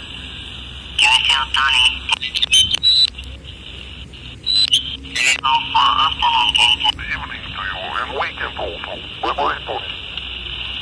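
A distorted voice speaks in bursts through a small radio loudspeaker.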